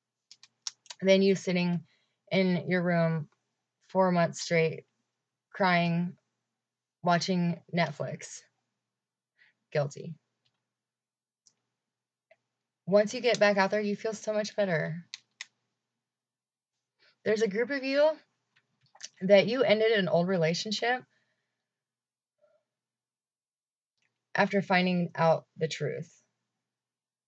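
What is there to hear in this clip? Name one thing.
A young woman talks calmly and close to a microphone, in short phrases with pauses.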